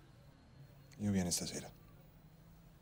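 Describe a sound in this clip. A young man speaks briefly and quietly.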